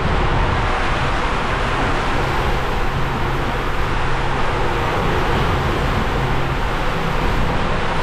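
Water rushes and splashes loudly through a plastic slide tube.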